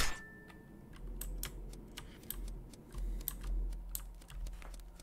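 Soft footsteps patter along steadily.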